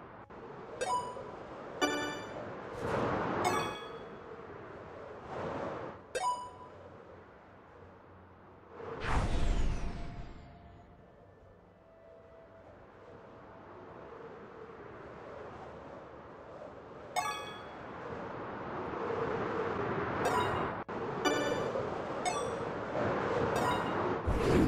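A bright chime rings out several times in a video game.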